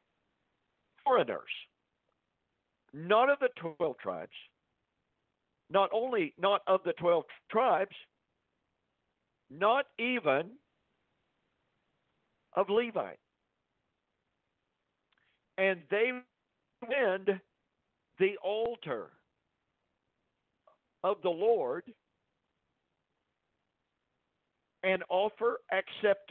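A man speaks slowly and deliberately into a microphone, pausing between phrases.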